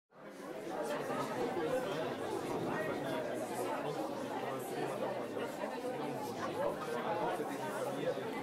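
A crowd of adults chatters and murmurs.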